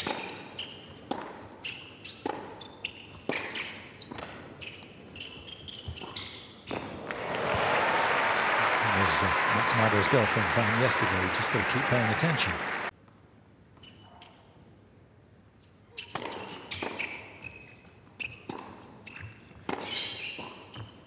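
Tennis balls are struck hard back and forth with sharp pops.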